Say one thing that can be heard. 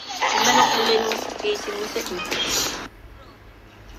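A young child cries and whines loudly close by.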